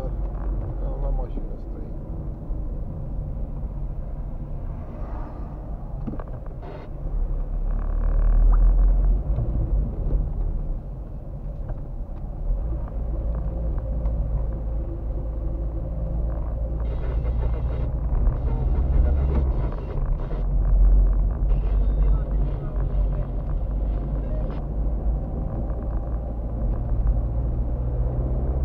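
Tyres roll and rumble over a rough road.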